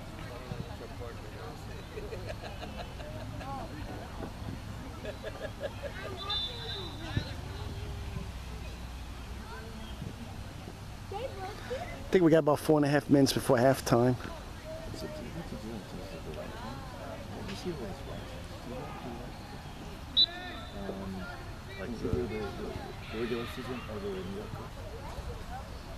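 Young players shout to each other across an open field in the distance.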